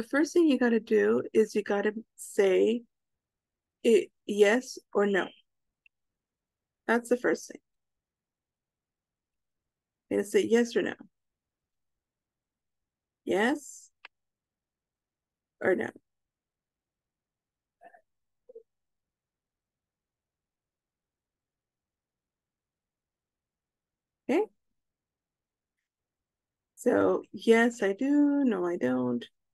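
A young woman speaks calmly over an online call, pausing often.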